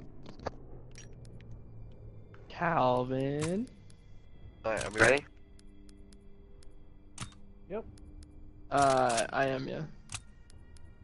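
Soft interface clicks sound as menu options change.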